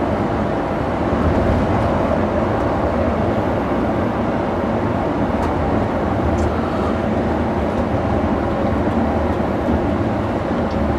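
A vehicle's engine hums steadily from inside the cab as it drives along.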